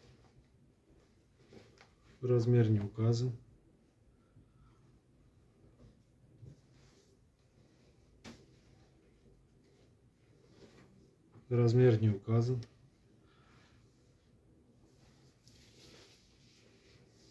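Fabric rustles softly as garments are laid down and smoothed.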